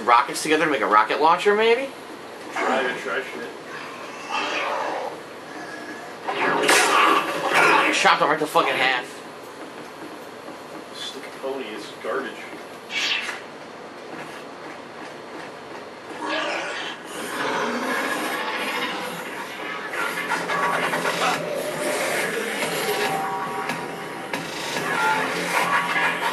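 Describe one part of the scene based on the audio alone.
Footsteps run across a hard floor.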